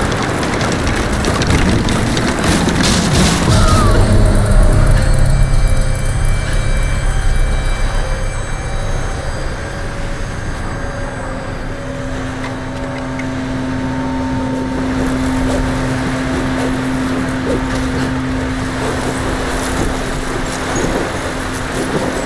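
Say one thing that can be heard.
Strong wind roars and gusts steadily.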